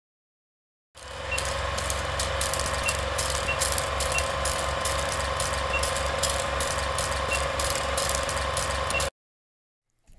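An old film projector whirs and clatters with crackle.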